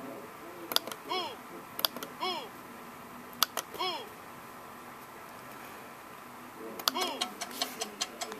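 A computer game plays short, springy cartoon sound effects.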